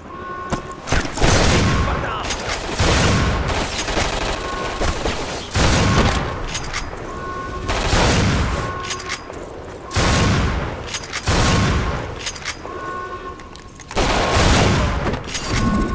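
Shotgun blasts boom one after another, each with a rolling echo.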